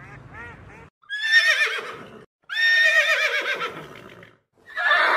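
A horse whinnies loudly, several times.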